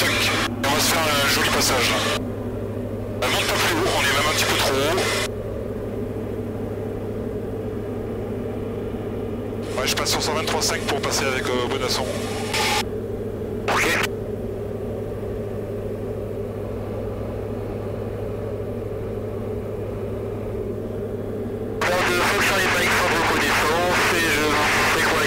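A small plane's engine drones steadily throughout.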